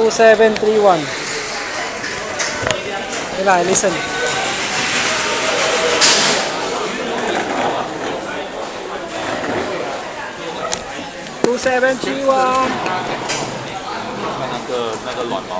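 Voices murmur in the background of a large echoing hall.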